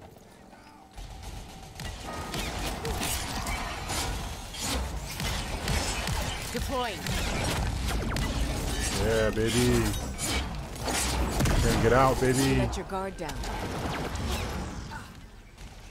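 Gunfire and explosions crack loudly in a video game.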